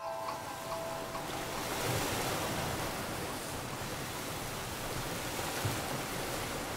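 Water rushes and splashes close by.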